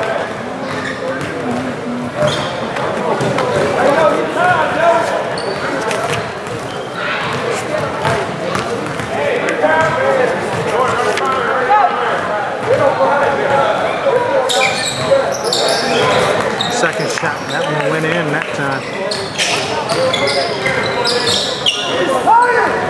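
Many voices chatter and call out in a large echoing gym.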